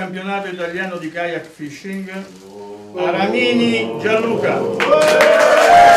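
An elderly man announces through a microphone.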